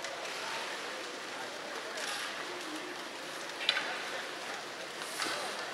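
Skates scrape on the ice.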